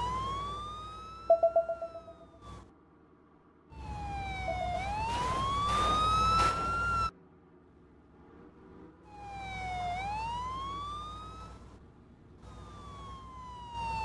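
A video game sports car engine revs up and down as it shifts through gears.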